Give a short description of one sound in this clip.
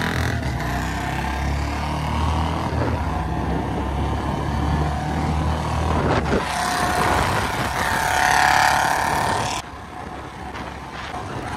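Wind roars past a moving rider.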